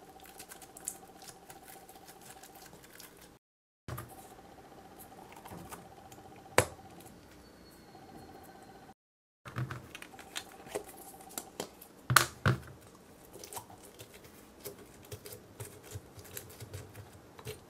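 Soft slime squelches as it is pressed into a syringe.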